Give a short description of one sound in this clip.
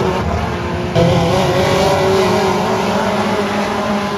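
A race car roars past close by.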